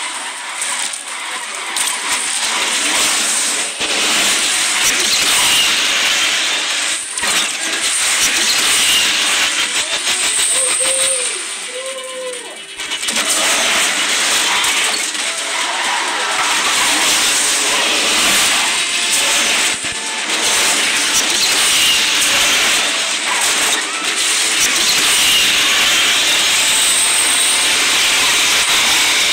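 A supercar engine roars at high speed in a racing video game.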